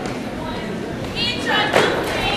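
Young women shout and cheer together.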